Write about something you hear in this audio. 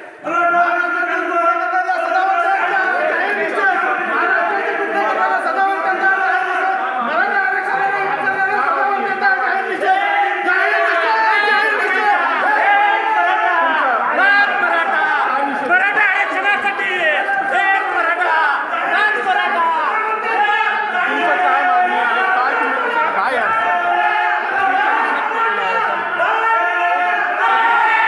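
A crowd of men shout and argue loudly and close by.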